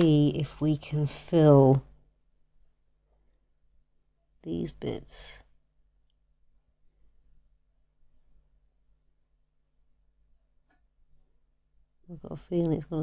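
A woman talks calmly, close by.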